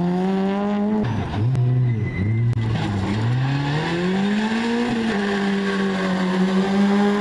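A second rally car engine revs loudly and roars past.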